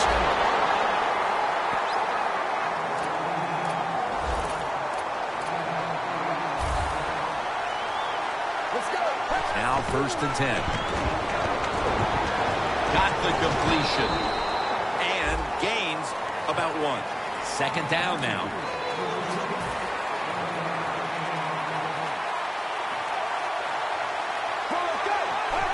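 A stadium crowd roars steadily in a large open arena.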